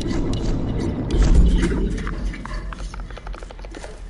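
Footsteps crunch over rough ground.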